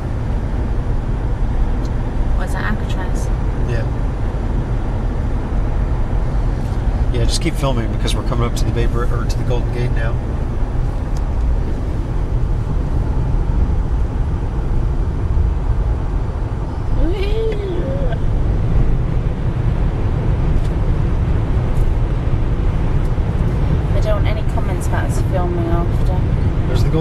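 Tyre and road noise rumbles inside a car moving at highway speed.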